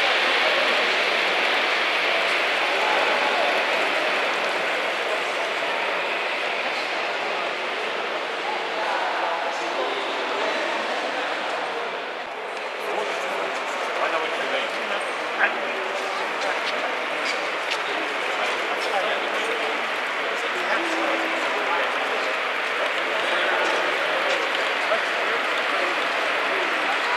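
A crowd of adults murmurs and chatters in a large echoing hall.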